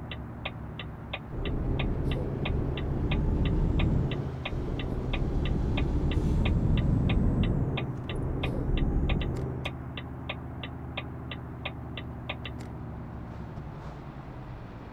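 A truck engine rumbles and swells as it pulls away, then settles to a lower drone.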